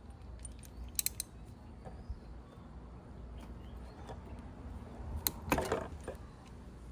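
A wrench clicks against metal as a screw is loosened.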